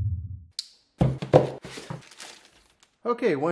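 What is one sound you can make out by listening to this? A plastic bag crinkles as a hand handles it.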